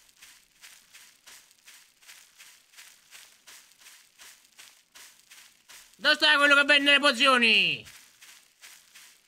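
Footsteps walk steadily on soft ground.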